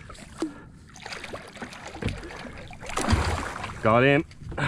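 Water splashes as a fish thrashes beside a kayak.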